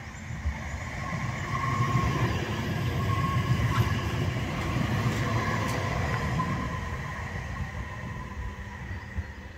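Tram wheels squeal on the rails as a tram passes.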